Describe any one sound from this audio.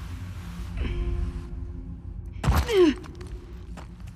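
A person drops down and lands with a heavy thud.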